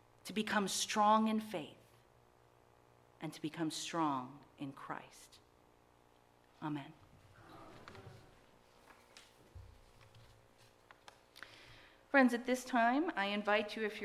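A woman speaks clearly into a microphone with pauses.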